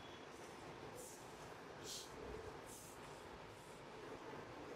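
Fabric rustles as it is unfolded.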